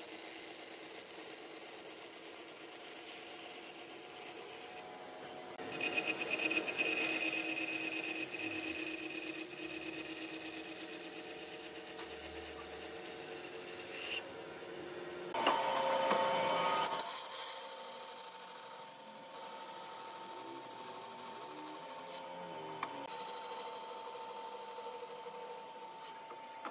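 A band saw blade cuts through thick wood with a rasping whine.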